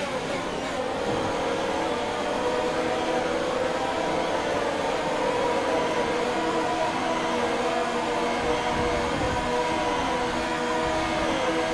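A racing car engine hums steadily at low speed.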